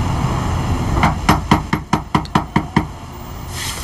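A man knocks repeatedly and firmly on a wooden door.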